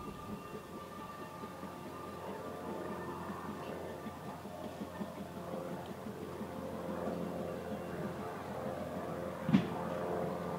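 A small steam locomotive chuffs rhythmically as it approaches, growing louder.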